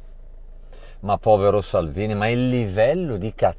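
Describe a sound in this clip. A middle-aged man speaks with animation, close to a phone microphone.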